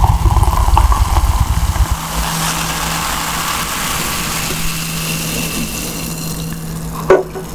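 Soda fizzes and crackles in a glass close up.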